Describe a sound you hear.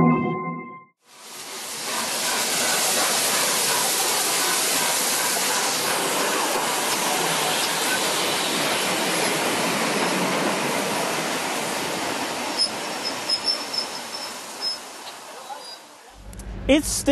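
A steam train rushes past close by with a loud roar.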